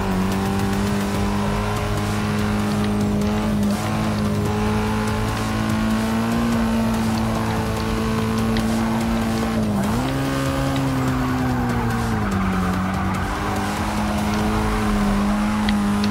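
Car tyres squeal faintly through the bends.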